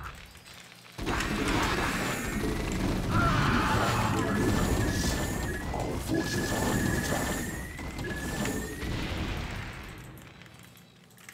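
Video game gunfire and explosions crackle.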